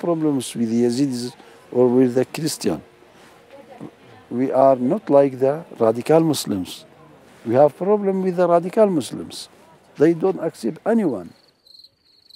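An elderly man speaks calmly and seriously, close by.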